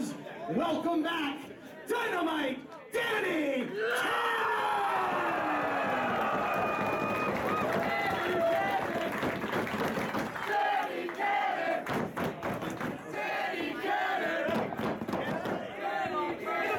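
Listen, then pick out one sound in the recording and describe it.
A crowd cheers and shouts loudly in an echoing hall.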